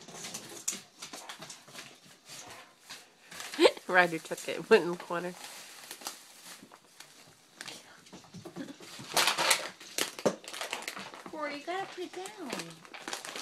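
Dogs' claws scrabble and tap on a wooden floor.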